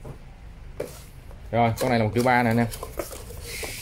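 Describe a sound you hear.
Cardboard boxes rustle and scrape as they are opened.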